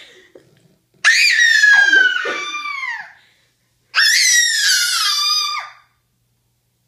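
A toddler squeals loudly with delight.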